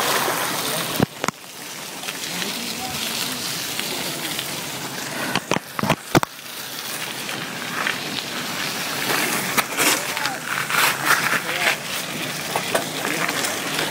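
Wind rushes noisily over a microphone outdoors.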